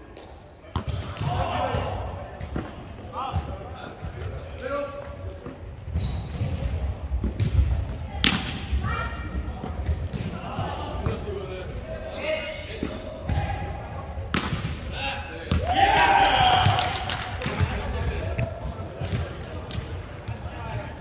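A volleyball is hit with sharp slaps in a large echoing hall.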